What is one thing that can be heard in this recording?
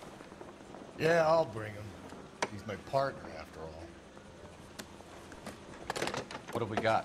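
A middle-aged man speaks calmly into a telephone close by.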